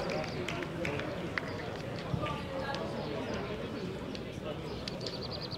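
Several men talk and call out to each other nearby, outdoors.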